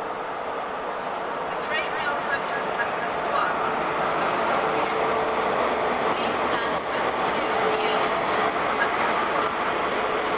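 A second train approaches and grows louder as it passes.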